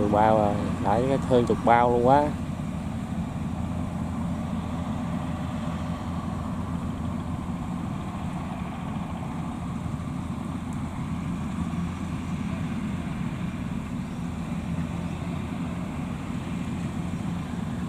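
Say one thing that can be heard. A harvesting machine engine rumbles steadily outdoors.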